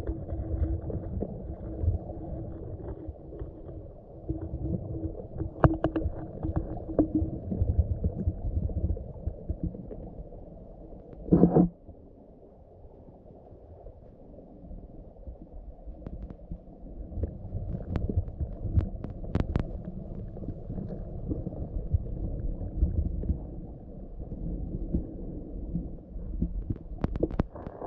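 Water rumbles and gurgles softly all around, heard from under the surface.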